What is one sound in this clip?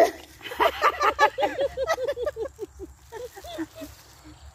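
Women laugh loudly and shout with excitement close by.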